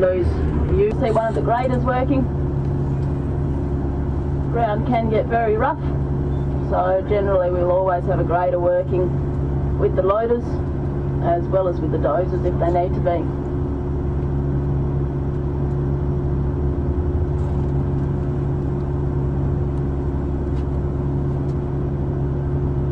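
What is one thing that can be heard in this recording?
A large dump truck engine rumbles steadily nearby.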